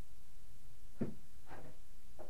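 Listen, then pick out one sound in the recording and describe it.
Something thumps on a table close by.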